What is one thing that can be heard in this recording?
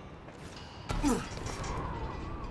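A hand grabs a metal ledge with a dull thud.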